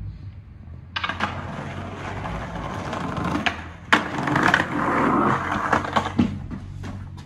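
Skateboard wheels roll and rumble over paving stones.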